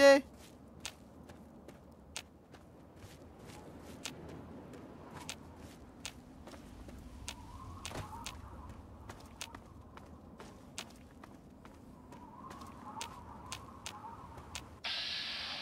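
Footsteps crunch over gravel and dry ground at a walking pace.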